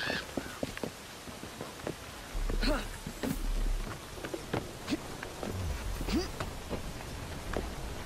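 Hands scrape and knock against stone while climbing.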